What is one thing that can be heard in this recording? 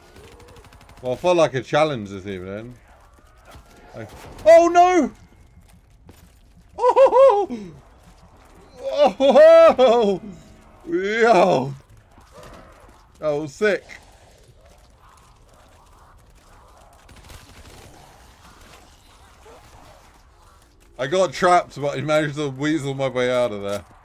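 A young man talks and exclaims with animation, close to a microphone.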